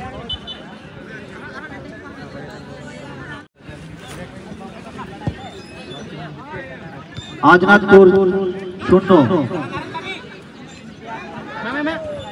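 A crowd of spectators chatters and shouts outdoors at a distance.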